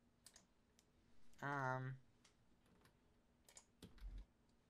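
Short electronic menu clicks sound as items are switched.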